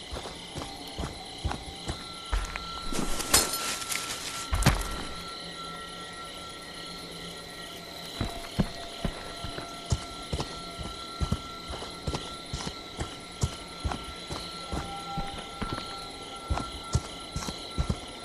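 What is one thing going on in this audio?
Heavy footsteps thud on the ground at a steady pace.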